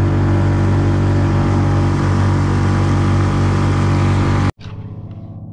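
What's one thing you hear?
Water rushes and splashes beneath a speeding boat.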